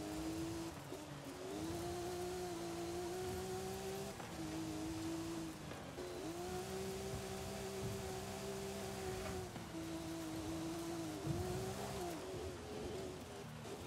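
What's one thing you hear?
Tyres rumble and crunch over a dirt track.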